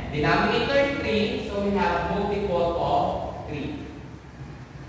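A young man speaks clearly, explaining.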